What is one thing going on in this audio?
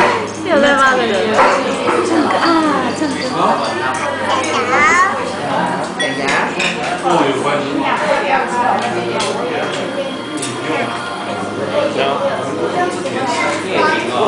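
A woman talks gently to a child close by.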